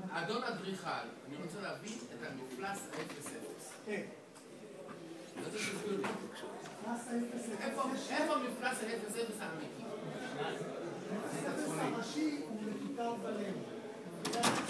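Several people murmur and talk in the background.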